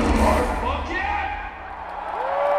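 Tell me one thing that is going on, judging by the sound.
A rock band plays a loud final chord through big speakers in a large hall.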